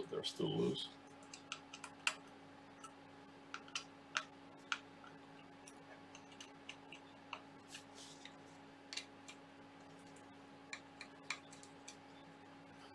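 A hex key clicks and ticks against metal screws.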